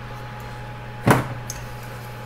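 A circuit board knocks down onto a hard surface.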